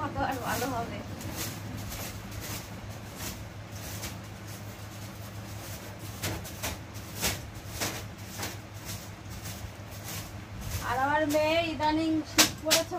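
A broom brushes and swishes across a bed sheet.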